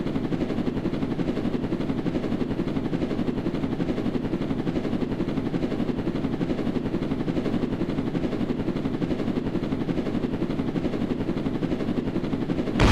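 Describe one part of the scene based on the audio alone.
A drone's propellers whir in a steady, low buzz.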